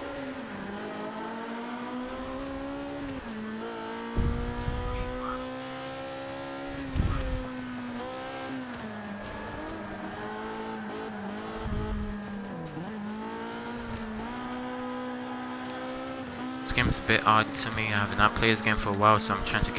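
A racing car engine revs high, rising in pitch and dropping with each gear change.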